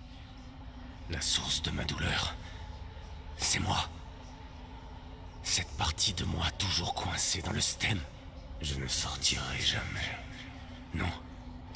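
A man speaks slowly in a low, strained voice close by.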